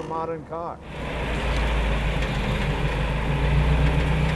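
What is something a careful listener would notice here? An old car engine idles with a low, steady rumble.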